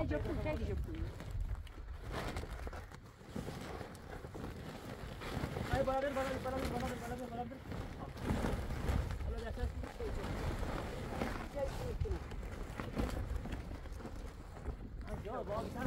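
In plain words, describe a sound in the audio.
A large plastic tarp rustles and flaps as it is pulled.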